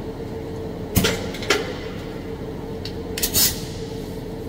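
A pneumatic tool clicks and knocks against metal.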